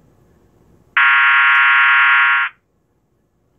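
A small electronic device gives a loud, steady buzzing beep.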